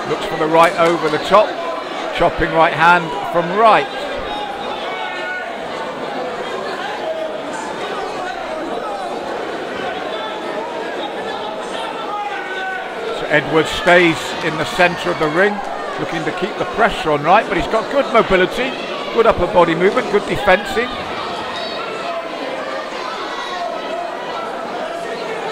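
A crowd murmurs steadily in a large hall.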